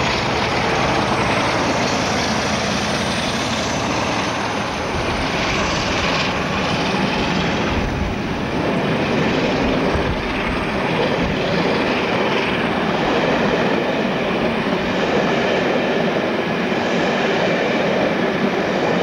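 Train wheels clatter and roar on the rails as carriages pass by.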